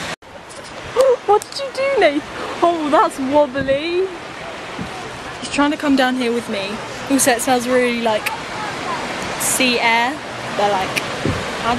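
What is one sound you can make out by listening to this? A young woman talks casually, close to the microphone.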